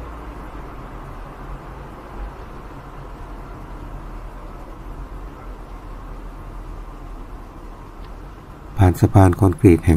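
Tyres roll steadily over a smooth road.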